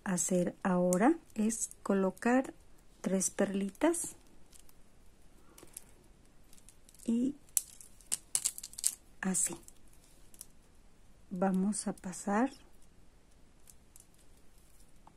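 Plastic beads click softly as they are handled and threaded.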